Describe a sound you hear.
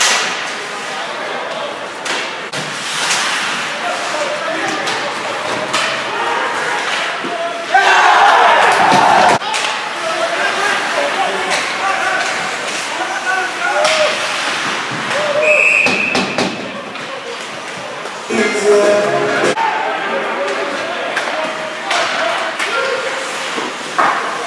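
Skates scrape and carve across ice.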